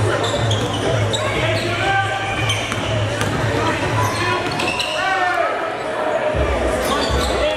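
A crowd murmurs in an echoing gym.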